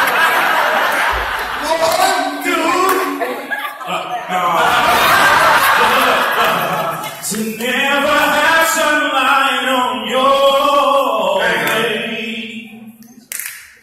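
Men sing loudly into microphones over loudspeakers in a large echoing hall.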